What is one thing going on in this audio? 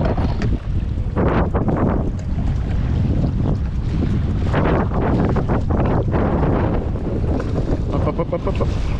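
Choppy waves slap and splash.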